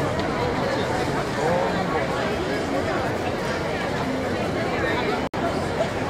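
A crowd of people chatters outdoors on a busy street.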